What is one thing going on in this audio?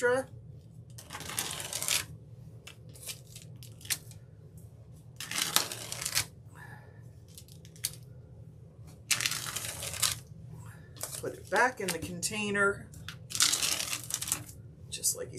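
Hands rub gritty powder across paper in scratchy, rustling bursts.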